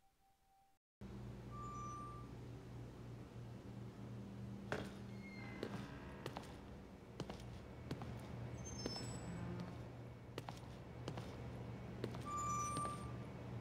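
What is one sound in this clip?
Footsteps walk slowly across a hard floor.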